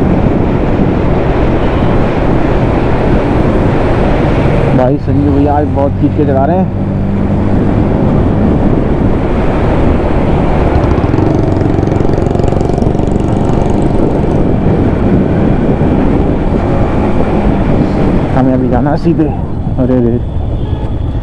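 Wind rushes past a moving motorcycle rider.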